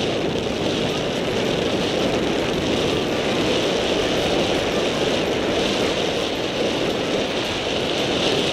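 Wind rushes loudly past the microphone.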